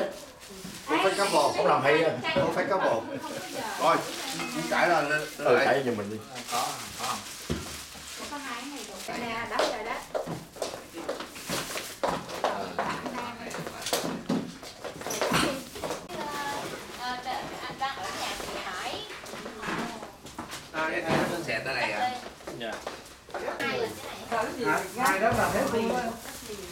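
Middle-aged men talk and laugh nearby.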